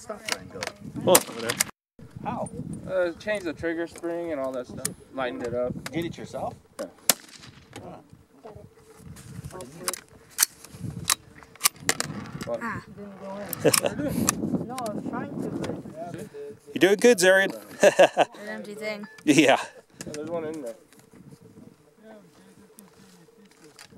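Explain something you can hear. Rifle shots crack sharply, again and again, outdoors.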